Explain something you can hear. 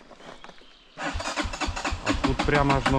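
A motorcycle engine runs close by.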